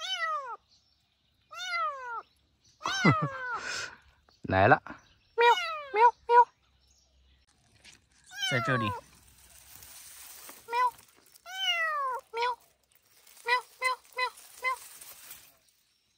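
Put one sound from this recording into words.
A small kitten meows repeatedly in high, plaintive cries close by.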